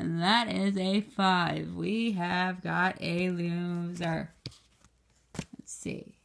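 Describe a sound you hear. A stiff card rustles as it is handled.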